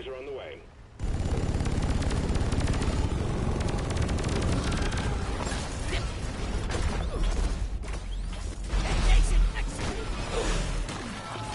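A game's energy gun fires in rapid bursts.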